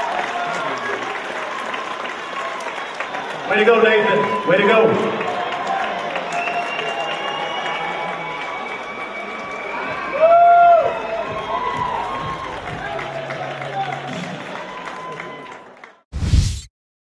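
A large audience cheers and shouts in an echoing hall.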